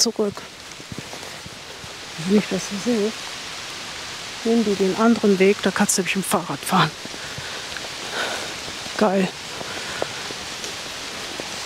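Footsteps crunch softly on a sandy path.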